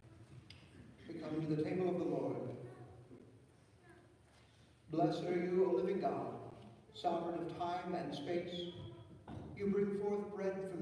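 A congregation of men and women sings together.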